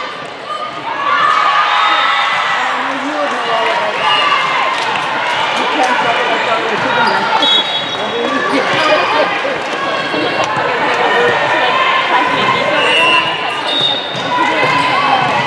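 Young women players shout and cheer excitedly in an echoing gym.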